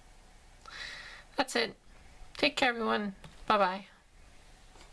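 An adult woman speaks close to the microphone in short, casual phrases.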